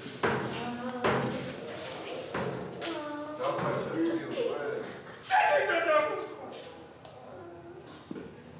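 A man speaks in a tense, strained voice up close.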